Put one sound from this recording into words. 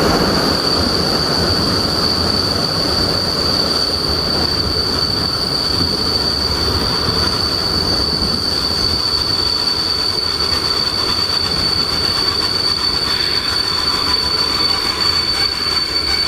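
A train rolls along the tracks with a steady rumble.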